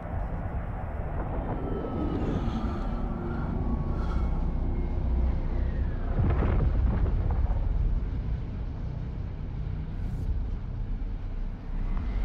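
A spaceship engine drones with a deep, steady rumble.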